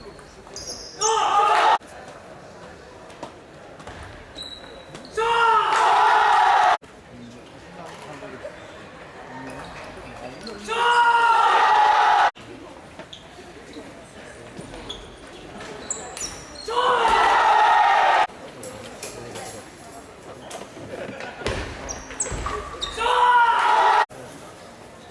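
A group of young men shout and cheer loudly in bursts, echoing in a large hall.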